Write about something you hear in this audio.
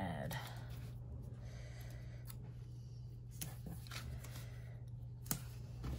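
A sticker is peeled off its backing sheet.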